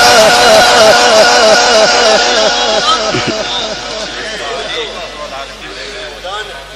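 A man chants in a melodic voice through a loudspeaker, echoing and slowly fading.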